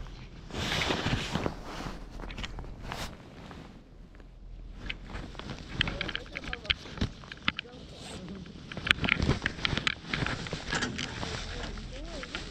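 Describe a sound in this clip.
Wind gusts and rumbles against a nearby microphone outdoors.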